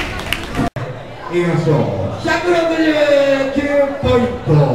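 A man speaks through a microphone to an audience.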